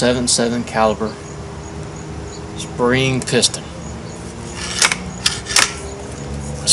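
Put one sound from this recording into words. A rifle's mechanism clicks and clacks as it is handled.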